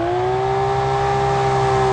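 Tyres screech as a car drifts around a bend.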